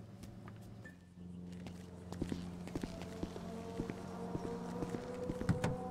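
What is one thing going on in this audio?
Footsteps tap on stone paving outdoors.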